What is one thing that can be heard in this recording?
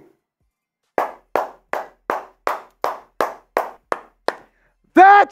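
A man claps his hands rapidly.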